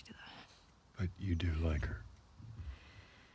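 A man remarks calmly in a deep voice.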